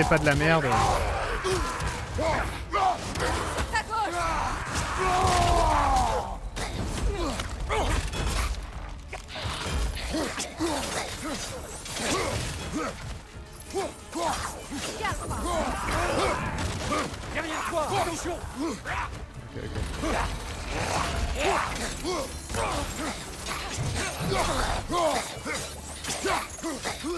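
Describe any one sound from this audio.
Weapons strike and clang against enemies in a fierce fight.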